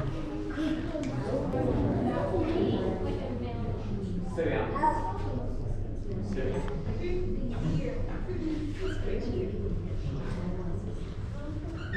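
A crowd of adults chatters indoors.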